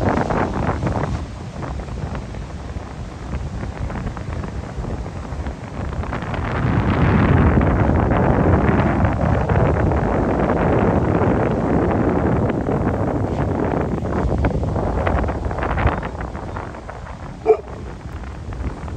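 Ocean waves break and roll onto the shore.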